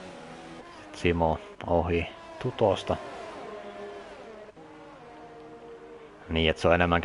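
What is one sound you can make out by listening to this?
Racing car engines roar loudly as cars pass close by.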